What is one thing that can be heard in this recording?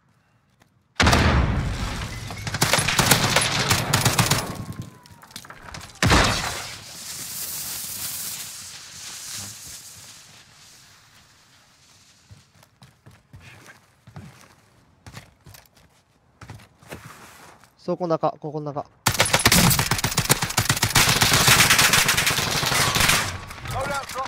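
A rifle fires rapid, loud bursts of shots close by.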